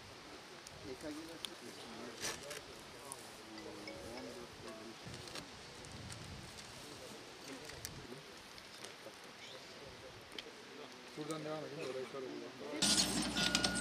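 Men talk quietly nearby outdoors.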